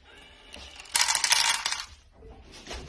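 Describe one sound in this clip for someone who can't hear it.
Dry cat food rattles into a plastic bowl.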